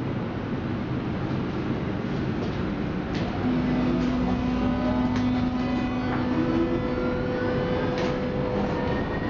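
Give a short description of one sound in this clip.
A subway train rumbles along the tracks.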